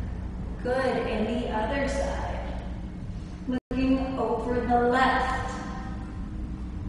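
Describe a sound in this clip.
A young woman speaks calmly and clearly nearby.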